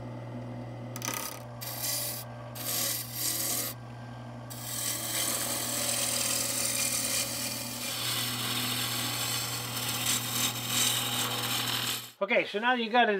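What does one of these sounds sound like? A chisel scrapes and shaves spinning wood.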